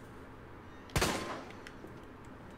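A pistol fires a single loud shot that echoes briefly.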